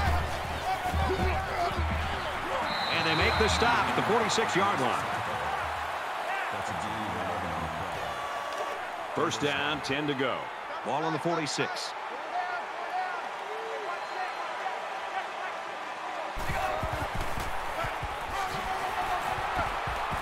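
A stadium crowd roars and cheers steadily.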